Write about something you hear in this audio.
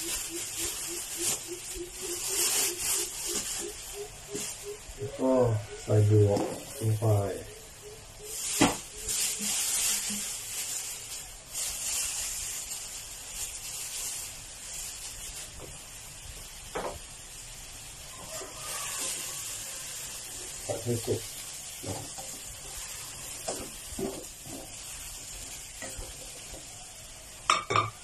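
Food sizzles and bubbles in a hot pan.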